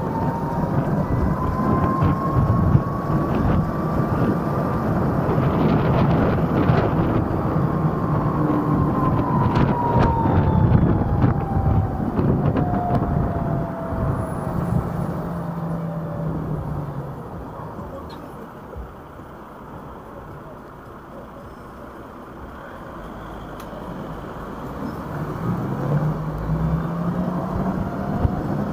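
An electric scooter motor whines, rising and falling in pitch as it speeds up and slows down.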